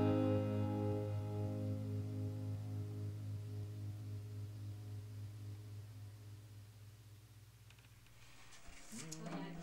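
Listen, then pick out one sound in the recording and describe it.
A synthesizer holds a deep chord that slowly fades.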